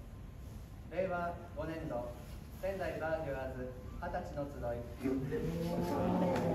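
A tuba plays low notes.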